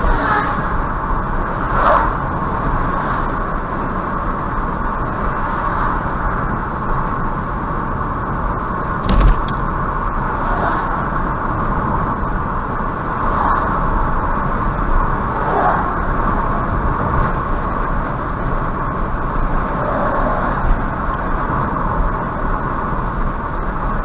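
Tyres roll on a highway.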